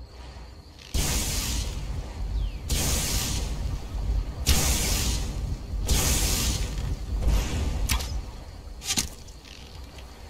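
An arrow is released with a whoosh.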